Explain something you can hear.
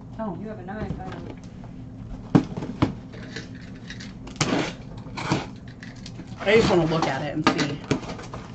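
Cardboard boxes thump and rustle as they are handled.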